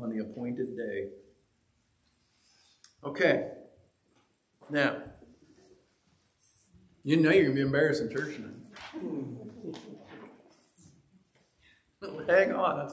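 An older man speaks calmly in bursts with pauses.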